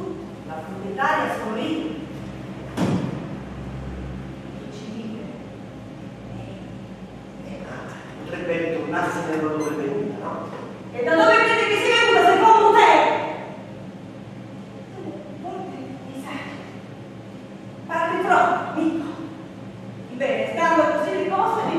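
A man speaks with animation, heard from a distance in an echoing room.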